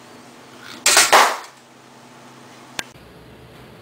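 A light ball rattles down a plastic track and knocks to a stop.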